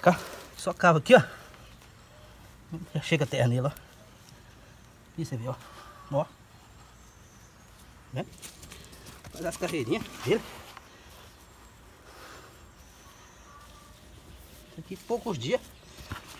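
Hands scrape and crumble dry soil.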